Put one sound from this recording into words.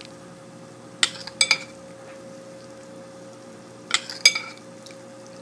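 A metal spoon clinks against the side of a ceramic pot.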